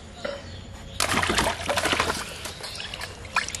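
Water splashes loudly as a fish is dropped into a tub.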